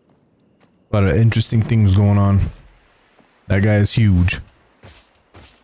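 A young man talks loudly into a close microphone.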